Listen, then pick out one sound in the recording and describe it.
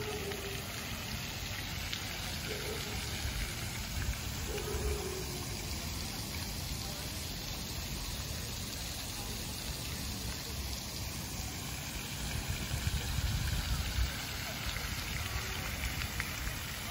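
A fountain splashes steadily into water.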